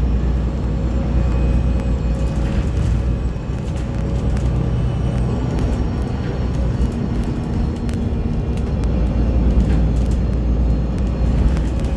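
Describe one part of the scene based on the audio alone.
Traffic passes by on a nearby road.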